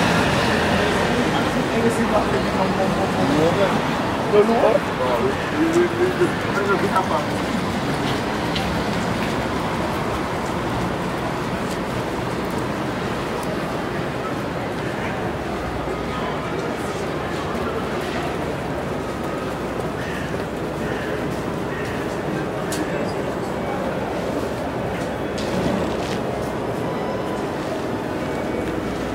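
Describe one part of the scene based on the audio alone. A crowd of adults chatters nearby outdoors, with voices close by at first.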